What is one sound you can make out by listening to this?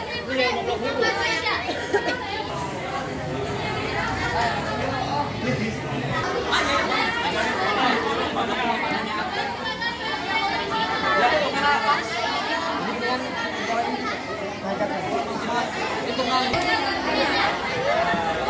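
A crowd of young men and women chatter all around, close by.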